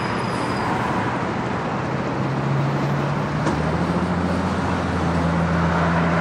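A vehicle engine idles with a low, steady hum.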